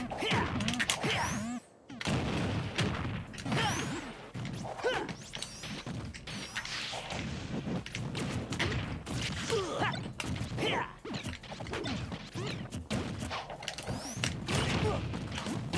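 Video game fighting effects thud, whoosh and burst in quick succession.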